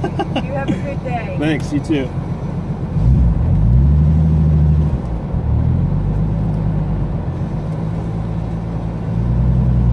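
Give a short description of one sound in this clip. A car engine idles and revs up inside the car.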